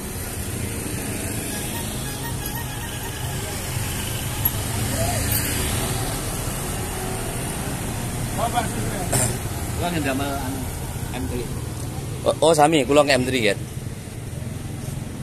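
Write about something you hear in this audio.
Motorbikes and cars pass by on a road outdoors.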